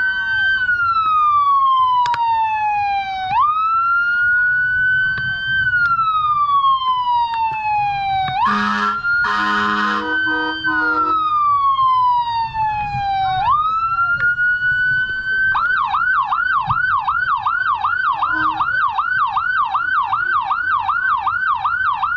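A siren wails loudly nearby, then switches to a fast yelp.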